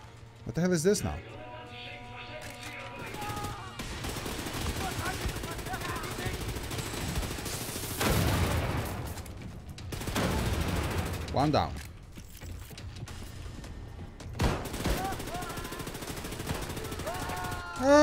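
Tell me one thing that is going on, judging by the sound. Automatic gunfire rattles in quick bursts.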